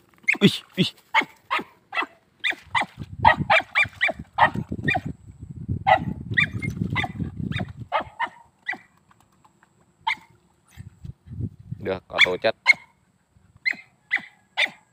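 A small dog barks repeatedly outdoors.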